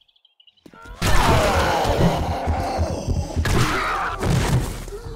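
A wooden bat thuds heavily against a body.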